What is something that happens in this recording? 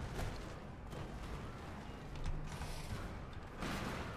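A heavy thud sounds as a figure lands.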